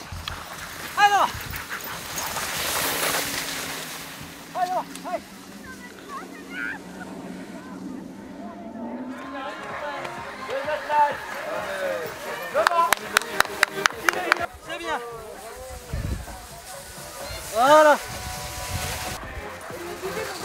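Sled dogs bark and yelp excitedly.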